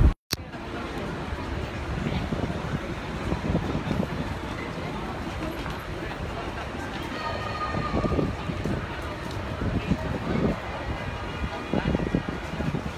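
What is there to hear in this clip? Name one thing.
A crowd of people chatters in the distance.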